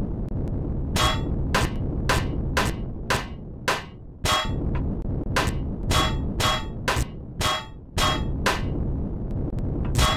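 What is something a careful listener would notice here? Short bright chimes sound in quick succession as items are collected.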